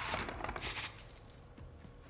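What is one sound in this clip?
A heavy chest lid clanks open.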